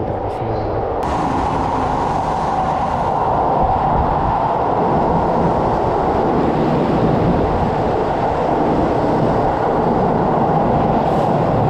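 A train rushes past loudly, rumbling and roaring in an echoing underground station.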